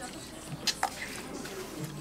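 A woman slurps noodles.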